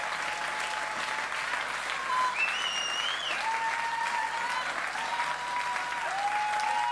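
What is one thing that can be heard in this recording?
A crowd claps its hands.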